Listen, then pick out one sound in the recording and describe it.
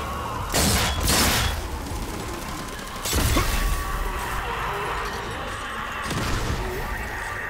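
A rifle fires loud gunshots.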